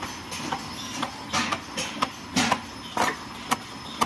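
Sharp metallic clacks ring out from a machine.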